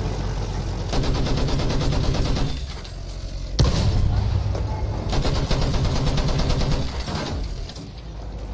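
Shells explode with heavy booms.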